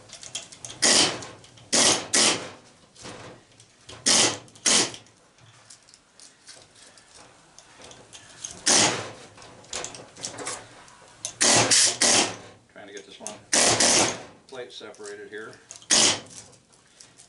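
Copper wire scrapes and rasps in short, loud bursts.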